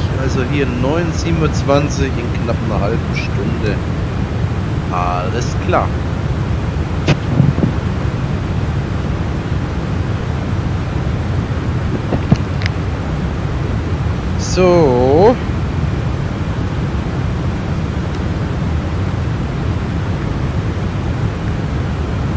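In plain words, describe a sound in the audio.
Jet engines drone steadily in a low rumble.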